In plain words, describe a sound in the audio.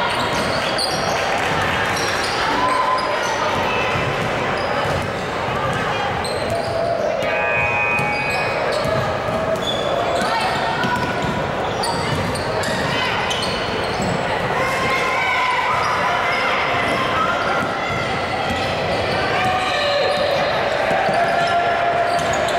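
Young women call out across a large echoing gym.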